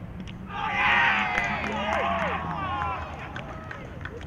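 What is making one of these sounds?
Several men shout and cheer outdoors on a field.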